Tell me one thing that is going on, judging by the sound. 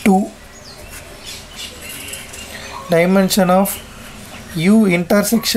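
A marker scratches softly across a board.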